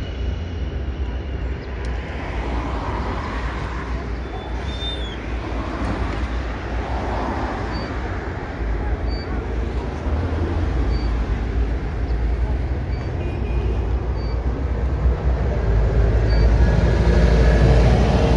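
Bus engines idle with a low, steady rumble outdoors.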